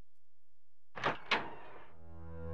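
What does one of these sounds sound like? A wooden door creaks slowly open.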